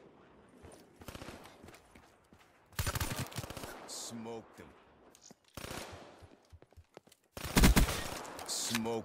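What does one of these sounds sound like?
Rapid automatic gunfire rattles in bursts.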